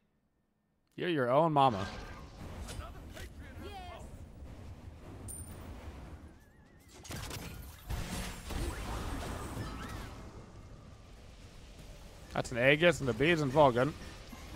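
Game effects whoosh and crackle.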